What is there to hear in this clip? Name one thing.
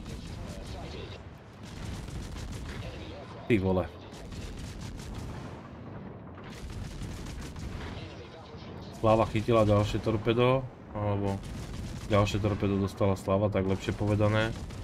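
Ship guns fire in heavy, booming salvos.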